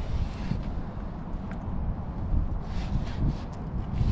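A marker squeaks and scrapes across rusty metal.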